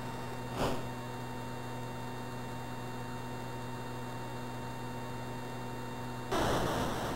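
A video game jet engine drones steadily.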